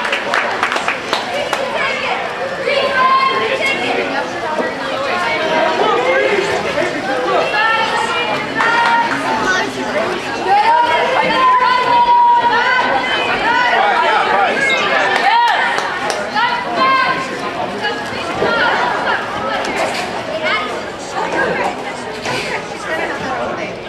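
Players splash and churn water in a pool.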